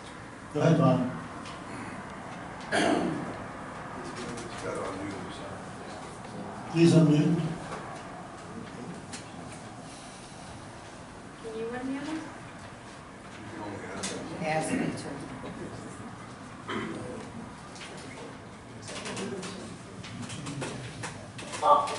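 A man speaks through a microphone over loudspeakers in an echoing room.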